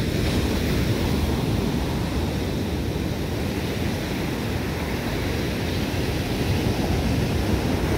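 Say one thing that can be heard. Foamy surf hisses as it spreads across the sand.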